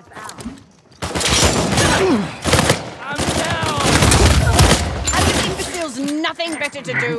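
A pistol fires rapid shots.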